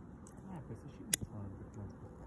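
A fire steel is struck with a sharp scrape.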